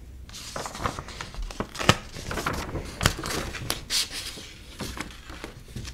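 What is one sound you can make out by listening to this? A sheet of paper rustles as it is handled.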